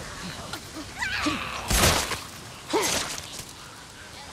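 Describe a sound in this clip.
A knife stabs into flesh with wet, heavy thuds.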